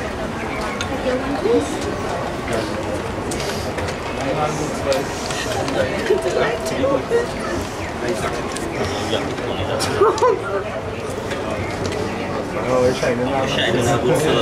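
A crowd of mourners murmurs and sobs quietly outdoors.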